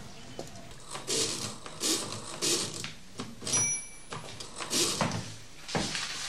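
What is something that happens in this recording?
A machine clatters with quick mechanical clicks.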